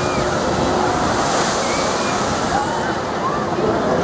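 A log boat splashes down into water with a loud rush of spray.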